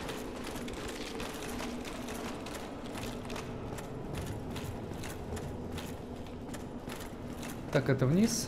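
Armoured footsteps clank steadily on a stone floor.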